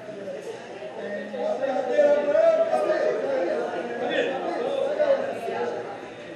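A man talks with animation nearby.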